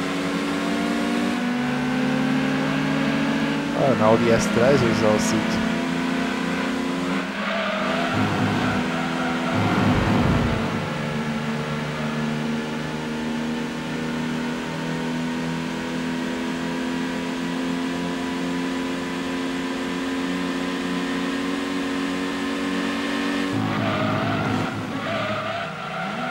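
A racing car engine roars at high revs, shifting gears as it speeds along.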